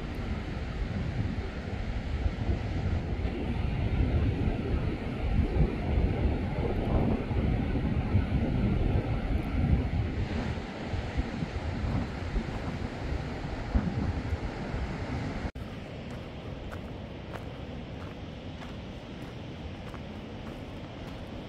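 Footsteps crunch on a rocky gravel path.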